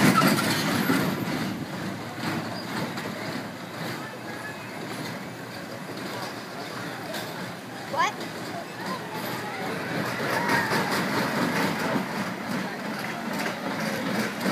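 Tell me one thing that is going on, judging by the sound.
A roller coaster rumbles past along its track at a distance.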